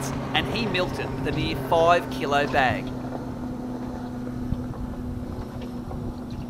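Water laps gently against a boat's hull.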